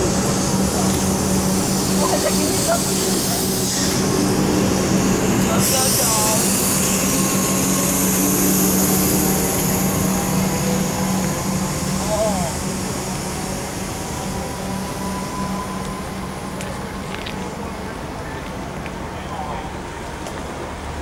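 An electric train hums as it pulls away and slowly fades.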